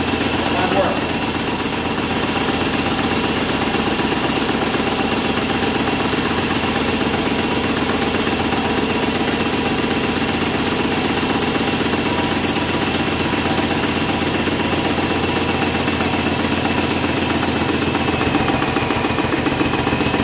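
A small electric pump hums and rattles steadily close by.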